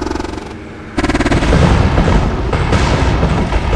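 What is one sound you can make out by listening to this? An explosion booms loudly and rumbles.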